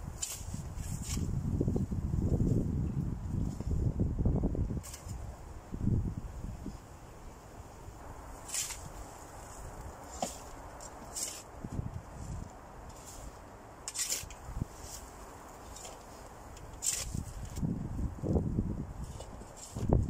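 A spade scrapes and digs into soil.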